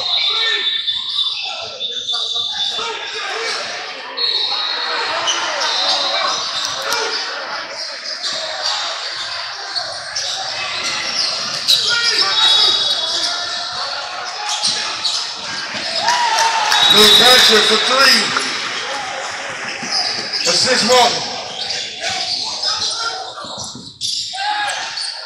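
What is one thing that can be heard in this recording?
Spectators chatter in an echoing gym.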